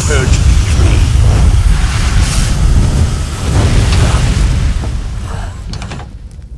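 A fire roars loudly.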